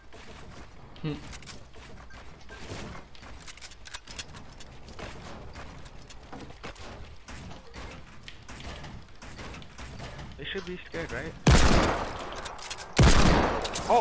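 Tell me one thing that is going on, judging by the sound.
Building pieces snap into place with quick, rapid clattering knocks.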